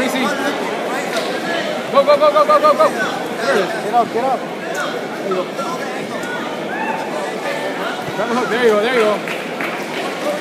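A crowd in a large echoing hall chatters and shouts throughout.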